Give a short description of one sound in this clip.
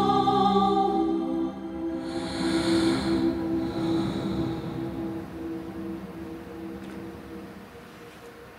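A young woman recites with feeling through a microphone.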